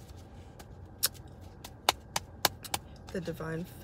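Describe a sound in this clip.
Small objects tap and click in a hand.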